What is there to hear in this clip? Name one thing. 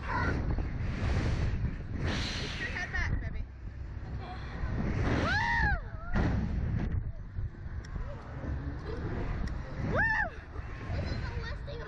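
A young girl screams and squeals with delight close by.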